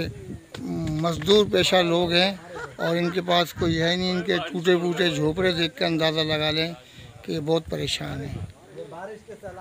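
An older man speaks calmly and close up.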